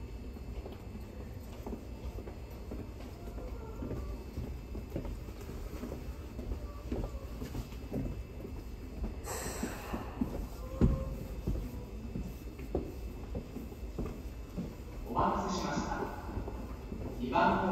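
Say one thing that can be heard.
A train hums and rumbles while standing in an underground station.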